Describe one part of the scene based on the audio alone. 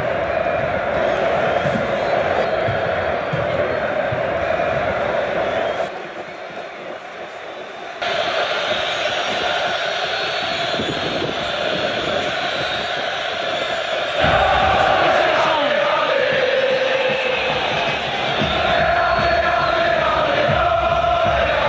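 A huge stadium crowd chants and roars loudly, echoing in the open air.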